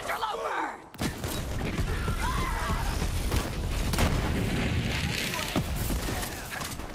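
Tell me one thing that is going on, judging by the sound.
Rapid gunfire blasts in a game.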